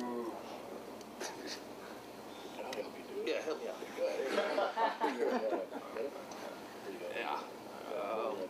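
Men laugh nearby.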